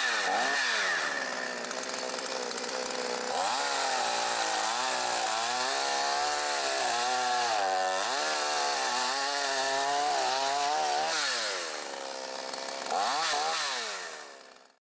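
A chainsaw engine revs up and down loudly.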